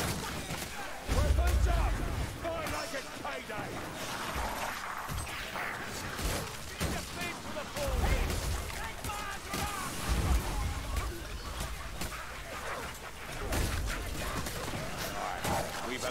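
Monstrous creatures shriek and snarl in a chaotic fight.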